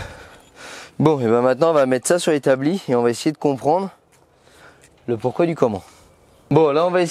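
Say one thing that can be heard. A young man talks calmly and clearly, close by.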